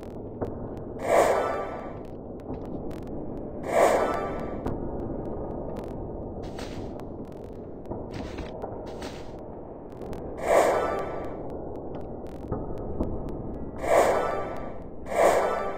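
A small object lands on a wooden floor with a clatter.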